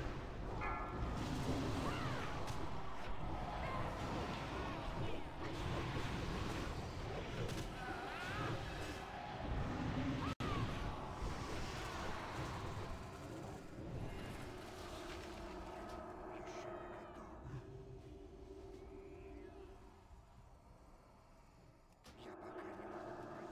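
Game spell effects burst, whoosh and crackle in a busy battle.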